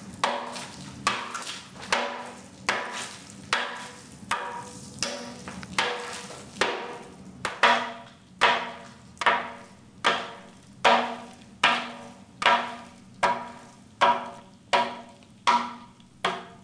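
A hammer strikes concrete in steady, repeated ringing blows.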